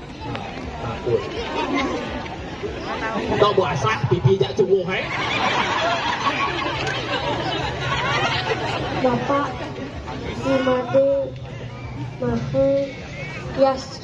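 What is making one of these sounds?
A woman speaks with animation through a microphone over loudspeakers.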